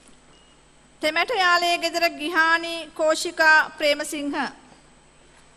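A man reads out names through a loudspeaker in a large hall.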